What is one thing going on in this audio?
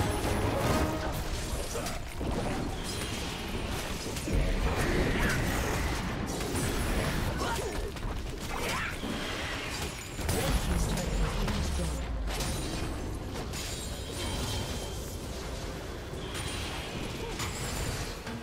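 Magic blasts whoosh and crackle during a chaotic fight.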